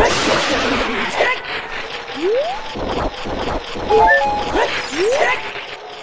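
A sword swishes through the air several times.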